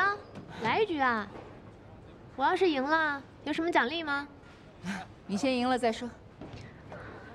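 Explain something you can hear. A young woman talks and laughs cheerfully.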